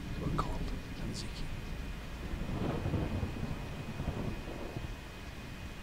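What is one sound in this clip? A young woman talks quietly into a microphone.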